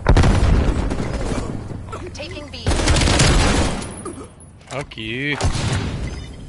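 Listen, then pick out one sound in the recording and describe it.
Rifle shots fire in quick bursts, close and loud.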